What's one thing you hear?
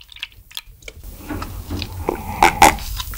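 A man gulps milk loudly close to a microphone.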